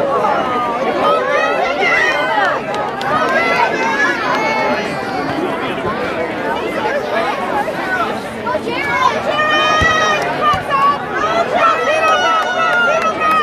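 A crowd of children and adults cheer and shout outdoors.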